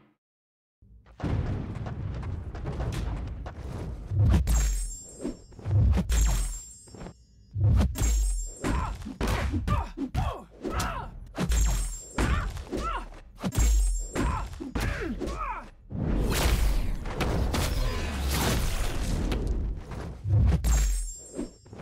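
Heavy punches and blasts thud and crash in a fight.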